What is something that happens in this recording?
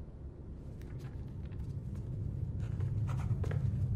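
Footsteps tap on a hard floor nearby.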